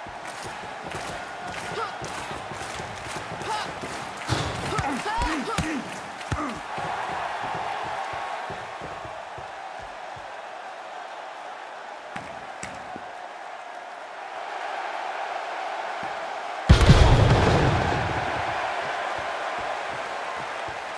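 A crowd cheers steadily in a large arena.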